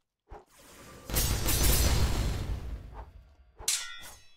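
A magical blast roars and crackles, then slowly fades.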